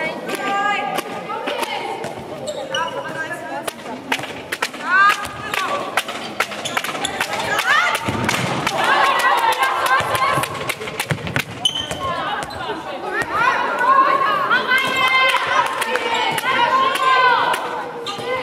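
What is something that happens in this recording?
Shoes squeak sharply on a hard floor in a large echoing hall.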